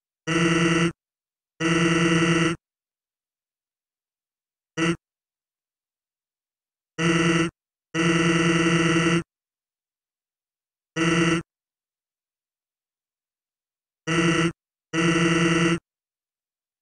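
Rapid electronic blips chatter in short bursts.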